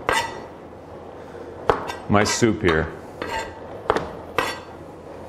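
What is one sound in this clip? A knife knocks sharply on a plastic cutting board.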